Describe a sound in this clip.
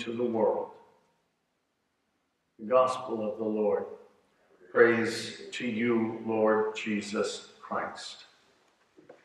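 An older man speaks calmly into a microphone in a softly echoing room.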